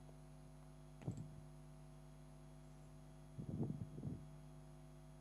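Hands turn a small plastic device over with soft knocks and rustles.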